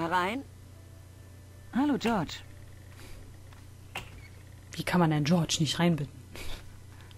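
A young woman talks with animation into a headset microphone, in short bursts.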